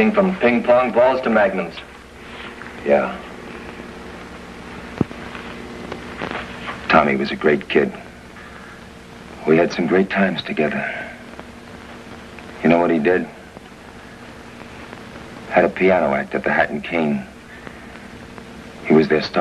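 A second man replies briefly.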